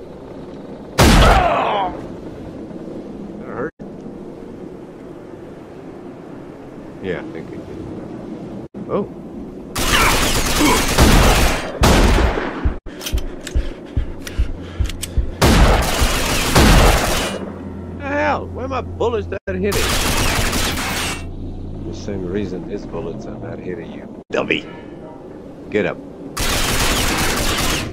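Pistol shots ring out in loud bursts.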